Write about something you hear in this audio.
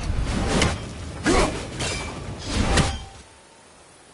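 An axe whooshes through the air as it is thrown.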